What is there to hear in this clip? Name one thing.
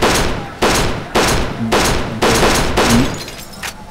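Window glass shatters and tinkles.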